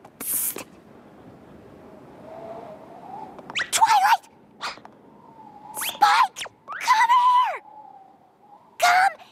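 A young woman speaks sharply, then calls out loudly several times.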